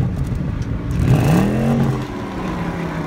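A car engine revs up sharply and settles back.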